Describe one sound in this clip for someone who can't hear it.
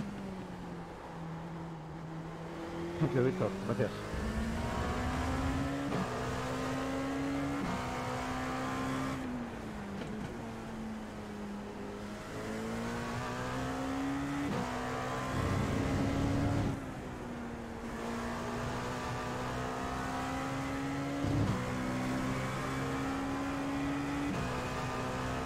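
A racing car engine revs up and down as it shifts through gears.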